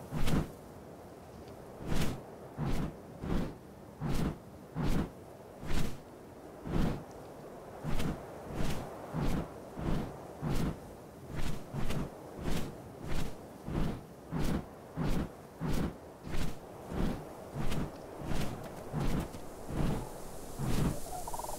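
Large leathery wings flap in a steady rhythm.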